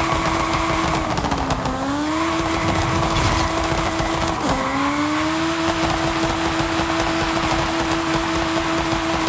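A small car engine whines loudly at high speed, dipping and climbing again as gears shift.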